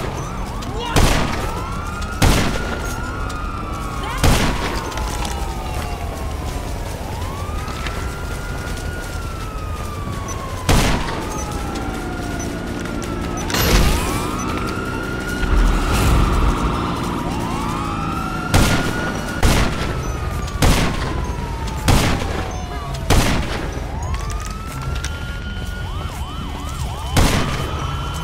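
A sniper rifle fires sharp, loud shots now and then.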